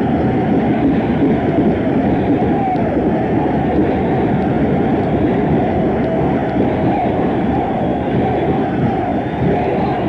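A live rock band plays loudly with electric guitars.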